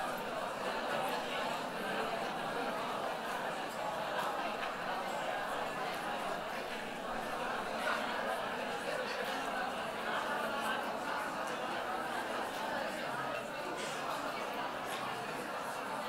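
A large audience chatters in an echoing hall.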